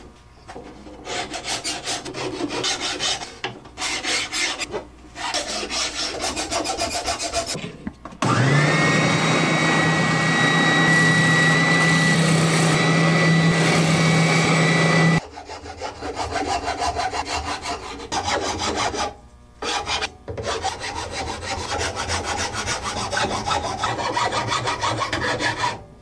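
A file rasps back and forth over wood in quick strokes.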